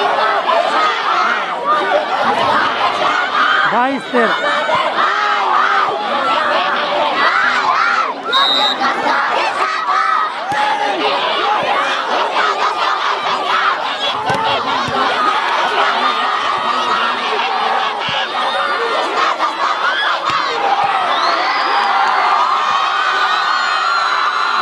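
A large outdoor crowd cheers and chatters.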